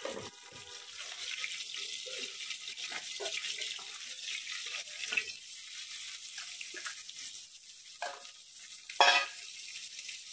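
Metal bowls clank together.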